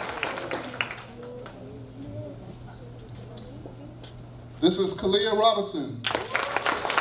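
An elderly man speaks through a microphone over a loudspeaker.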